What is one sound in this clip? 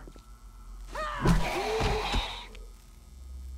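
A young woman cries out loudly into a close microphone.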